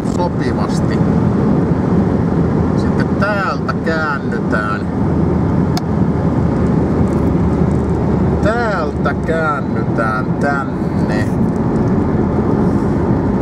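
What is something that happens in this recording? A car engine hums steadily inside a moving car.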